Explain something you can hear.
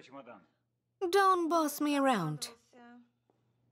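A man speaks with emotion nearby.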